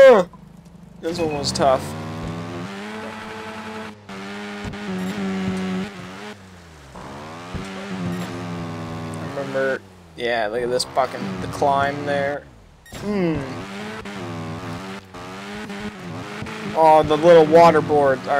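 A motorbike engine revs up and down, rising and falling in pitch.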